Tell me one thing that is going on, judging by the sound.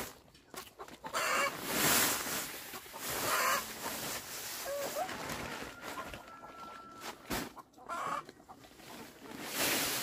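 Sand pours from a plastic woven sack onto a wet concrete floor.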